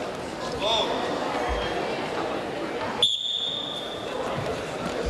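Two wrestlers scuffle and shift their weight on a mat.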